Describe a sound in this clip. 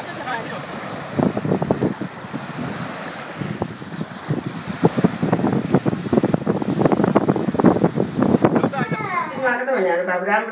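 Waves splash and wash against the shore in the wind.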